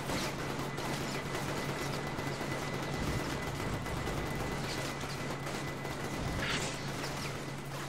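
Explosions boom and crackle in quick bursts.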